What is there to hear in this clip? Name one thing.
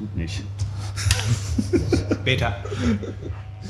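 A man laughs briefly.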